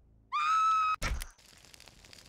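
A body lands on hard ground with a heavy thud.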